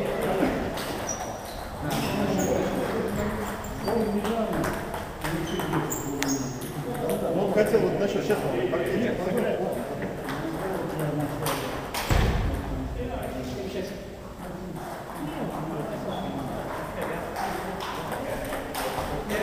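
Paddles strike table tennis balls with sharp taps.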